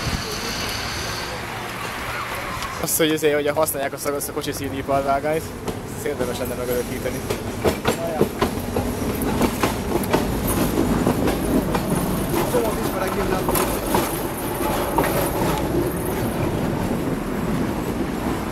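A tram rumbles closer along its tracks and passes close by.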